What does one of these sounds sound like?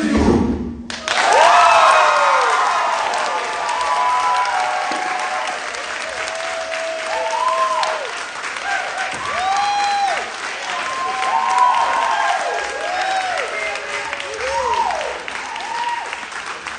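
Young men whoop and cry out with rising and falling shouts.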